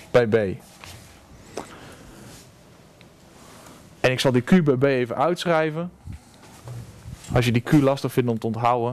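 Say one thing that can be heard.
A young man speaks calmly and clearly nearby.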